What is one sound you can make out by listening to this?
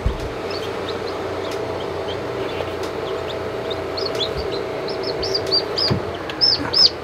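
A small fan hums steadily.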